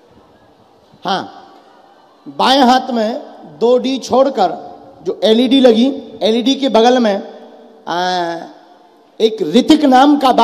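A young man speaks loudly and with passion into a microphone.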